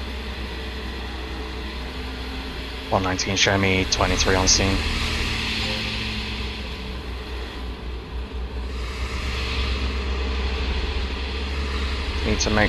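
A car engine hums steadily while driving on a road.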